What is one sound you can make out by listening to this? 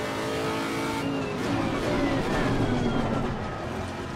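A racing car engine drops in pitch as the car brakes hard.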